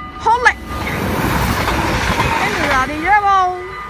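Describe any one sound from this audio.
A train rushes past close by.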